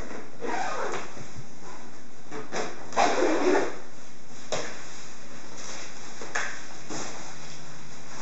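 A bag's fabric rustles.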